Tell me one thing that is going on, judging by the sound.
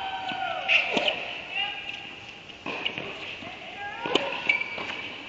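A tennis ball is struck sharply with a racket in an echoing indoor hall.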